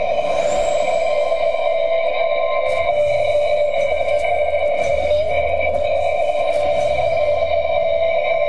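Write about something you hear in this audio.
Game effects chime as a score counts up.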